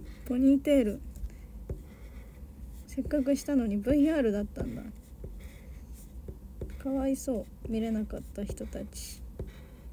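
A young woman speaks softly and playfully close to a microphone.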